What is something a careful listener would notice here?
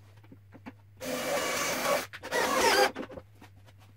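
A cordless drill drives a screw into wood.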